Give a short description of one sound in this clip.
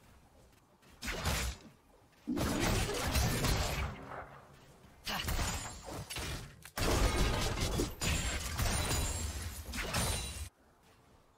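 Game spell and weapon effects crash and burst loudly in a fight.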